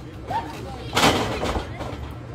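A wrestler slams onto a wrestling ring mat with a loud thud.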